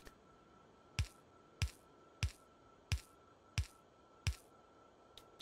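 Heavy objects thud down one after another at a steady pace.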